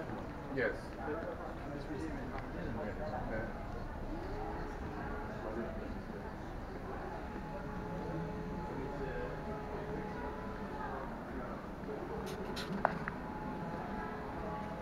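A crowd of visitors murmurs and chatters in a large echoing hall.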